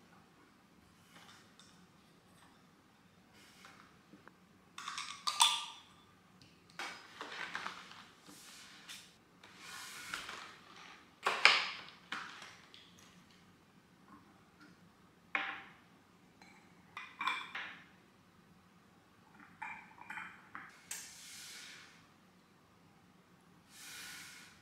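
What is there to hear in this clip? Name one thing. Glass clinks softly as a glass cup is handled up close.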